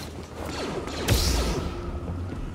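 A lightsaber ignites with a sharp hiss.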